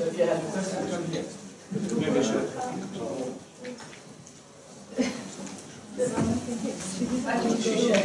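An elderly woman speaks calmly, a little way off in a large room.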